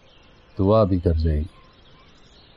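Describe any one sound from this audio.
A man speaks briefly in a low, calm voice up close.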